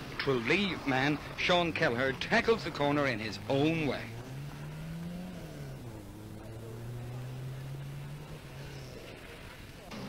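A rally car engine roars and revs hard up close, then drones on as the car drives away.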